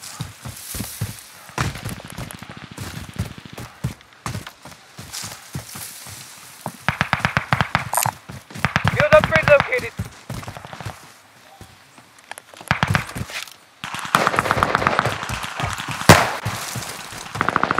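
Quick footsteps thud on dirt.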